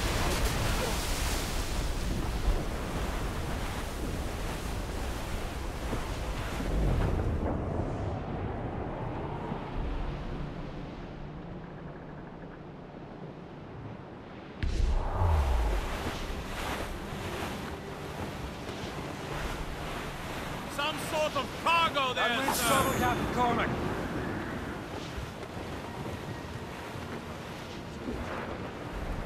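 Stormy wind howls across the open sea.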